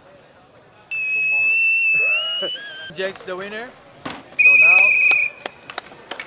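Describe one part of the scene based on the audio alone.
A man blows a shrill whistle close by.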